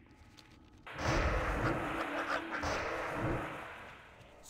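A shimmering magical beam hums loudly.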